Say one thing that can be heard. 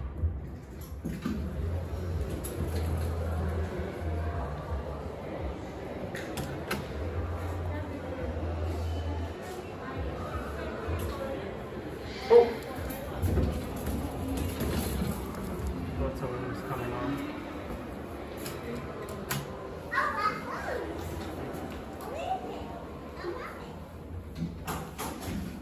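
Elevator doors slide open and shut with a low rumble.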